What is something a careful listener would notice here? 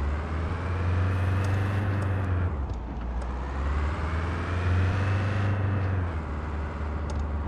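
A car engine hums and revs up and down as the car drives.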